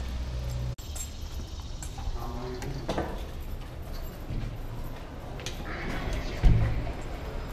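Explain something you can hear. A glass door swings open and thumps shut.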